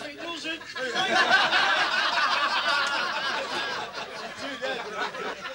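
Men laugh heartily nearby.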